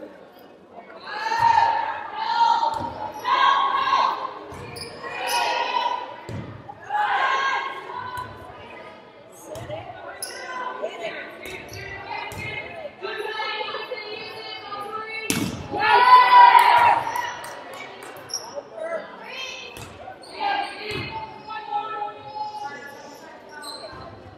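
A crowd of young women chants and cheers loudly in an echoing hall.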